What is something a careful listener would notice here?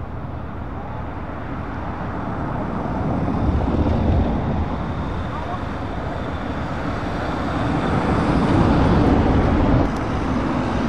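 A truck towing a caravan approaches and rumbles past.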